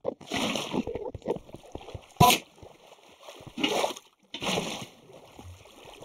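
Water splashes and trickles as it is poured out.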